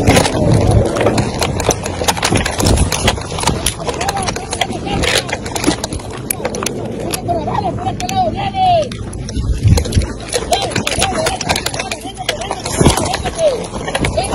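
A rifle rattles and clicks as it is handled.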